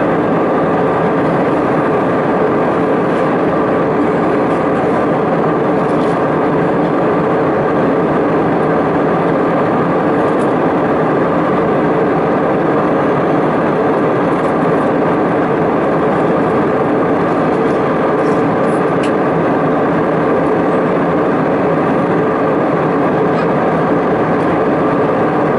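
Jet engines roar steadily inside an airliner cabin.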